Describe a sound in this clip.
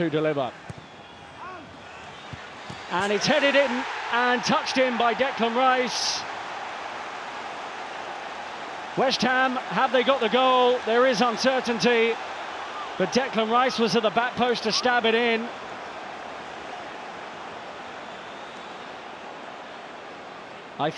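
A large stadium crowd murmurs and chants steadily outdoors.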